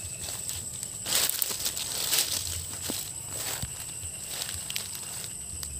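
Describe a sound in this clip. Dry leaves and twigs crunch underfoot.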